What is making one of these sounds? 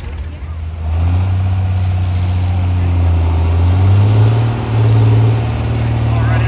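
A tractor engine revs up and climbs in pitch as it strains under load.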